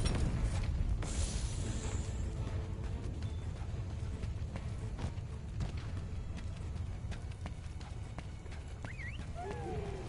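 Magic sparks crackle and fizz.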